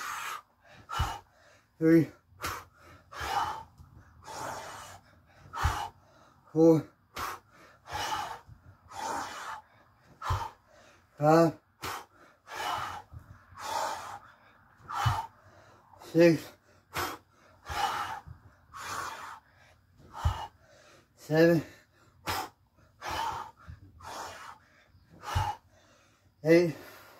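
A man breathes hard in sharp bursts while exercising.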